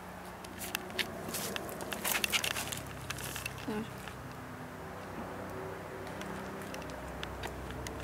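Footsteps rustle through leaves and grass.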